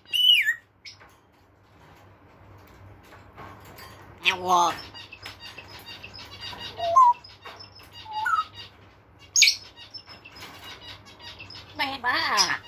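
A parrot's claws scrape and rattle on metal cage bars.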